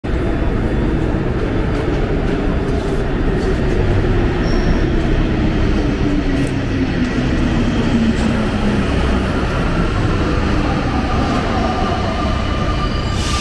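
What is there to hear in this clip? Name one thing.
An underground train hums beside the platform in an echoing hall.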